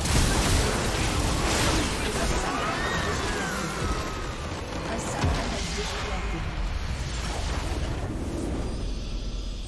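Spell blasts and impacts crackle and boom in a game battle.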